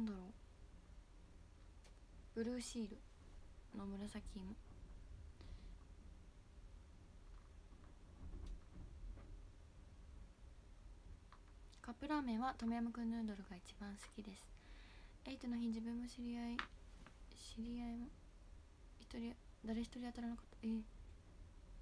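A young woman talks calmly and close to a microphone, in short bursts.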